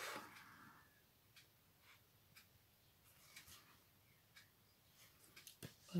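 A metal tool taps and scrapes lightly on paper.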